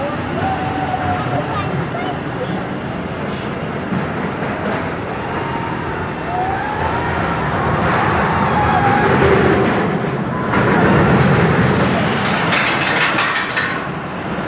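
Roller coaster cars rumble and clatter along a steel track.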